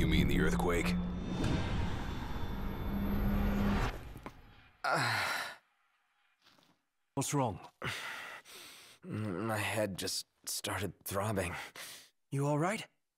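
A young man speaks in a pained, strained voice.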